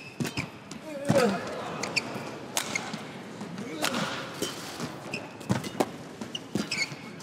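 Shoes squeak sharply on a court floor.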